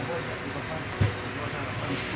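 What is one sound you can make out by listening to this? A metal window frame knocks against a workbench.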